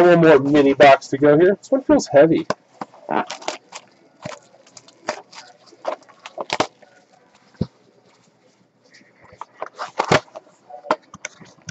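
Plastic wrapping crinkles and tears as a card box is opened by hand.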